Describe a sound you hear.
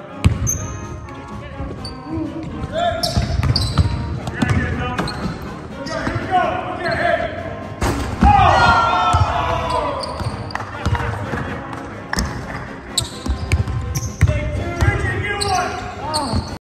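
A group of young people cheer and shout.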